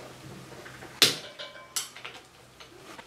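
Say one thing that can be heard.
A metal wrench clicks against a fitting.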